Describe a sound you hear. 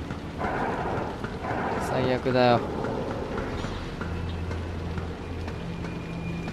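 Footsteps tread slowly down stairs.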